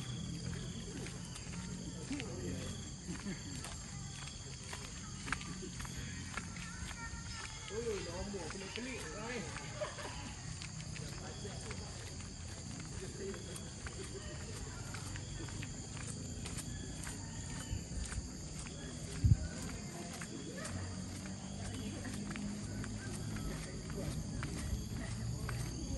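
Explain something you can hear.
Footsteps patter on a paved path.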